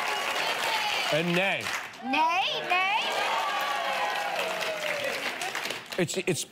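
A studio audience laughs and applauds.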